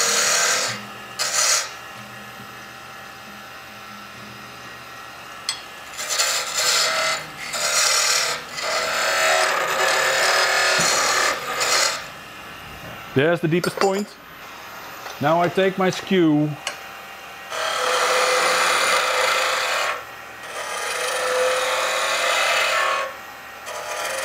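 A lathe chisel scrapes and hisses against spinning wood in bursts.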